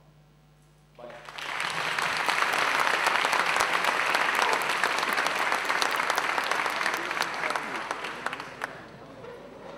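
An audience applauds loudly, then the applause fades.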